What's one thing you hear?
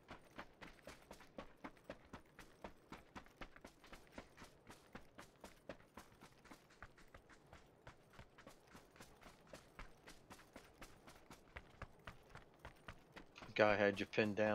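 Footsteps run quickly and steadily over dirt and grass.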